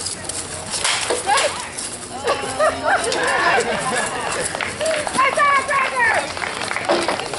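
Spectators talk and call out nearby, outdoors.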